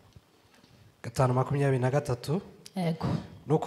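A man reads aloud through a microphone.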